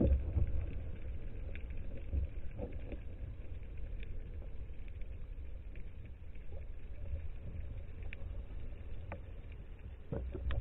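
Muffled underwater rumble and bubbling surround a diver.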